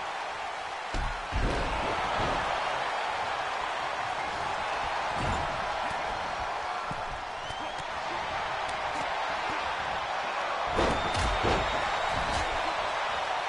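Bodies thud heavily onto a wrestling mat.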